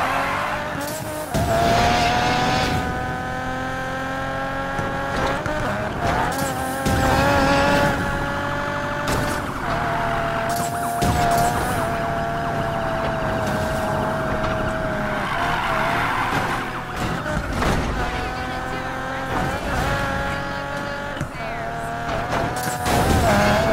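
A car engine roars and revs at high speed.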